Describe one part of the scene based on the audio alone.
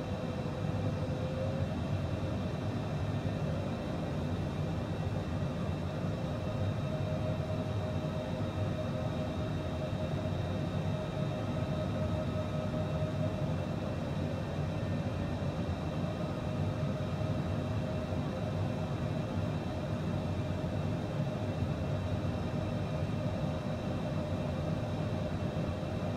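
Jet engines hum and roar steadily.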